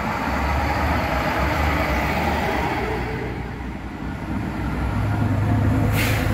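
A bus engine rumbles as the bus drives past.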